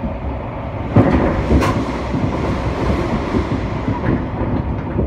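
A passing train rushes by in a sudden loud whoosh.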